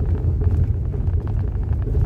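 A windshield wiper swipes across the glass once.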